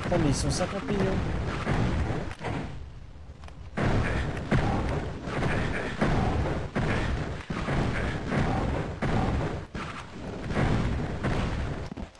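A crossbow fires bolts again and again.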